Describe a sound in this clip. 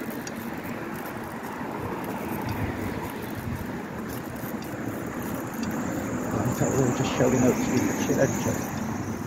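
Wind rushes past a bicycle rider outdoors.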